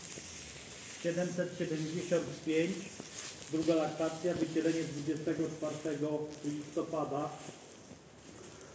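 A cow moos nearby.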